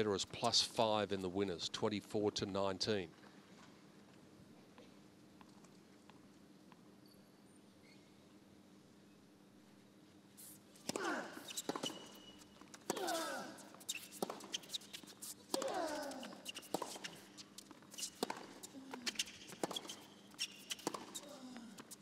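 A tennis ball is struck with sharp pops.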